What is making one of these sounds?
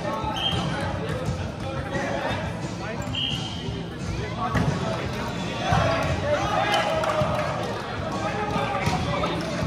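Young men talk and call out in a large echoing hall.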